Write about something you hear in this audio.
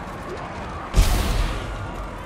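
A gun fires with a loud bang.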